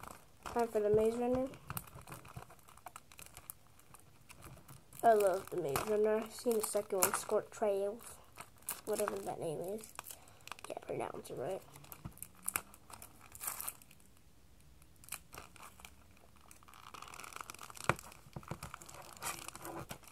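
Plastic wrapping crinkles in a boy's hands.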